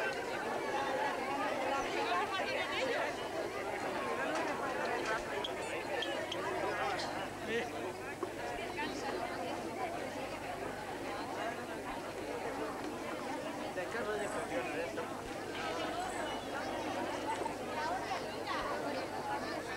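A large outdoor crowd of men, women and children chatters and calls out.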